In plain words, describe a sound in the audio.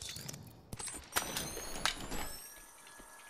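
A short electronic chime sounds as an item is picked up.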